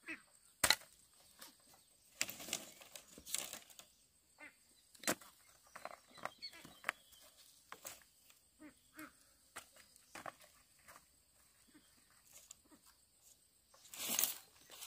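Bamboo poles knock and clatter against one another.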